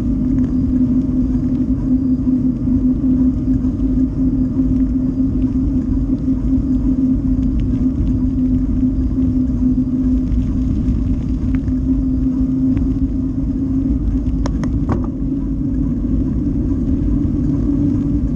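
Tyres roll over a rough asphalt road at a steady pace.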